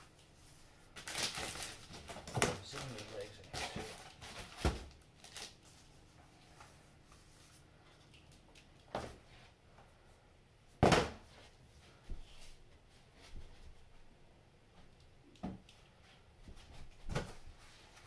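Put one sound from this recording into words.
Plastic wrapping rustles and crinkles as hands move it.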